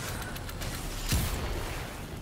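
A loud blast booms in a video game.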